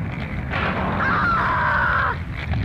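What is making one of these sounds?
A young woman screams in fear.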